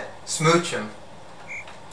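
A young man speaks briefly and calmly, close by.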